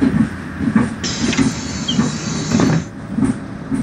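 Bus doors close with a pneumatic hiss.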